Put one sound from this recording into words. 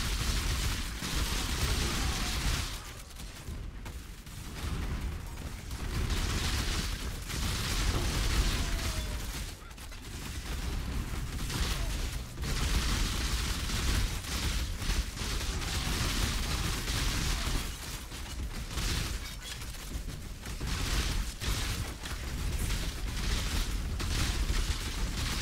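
Spell blasts and combat effects crackle and boom in a video game battle.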